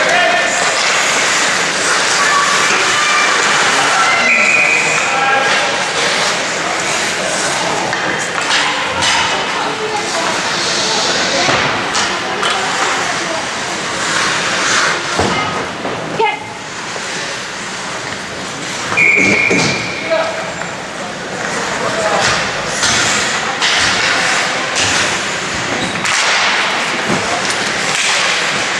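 Skates scrape and hiss on ice in a large echoing rink.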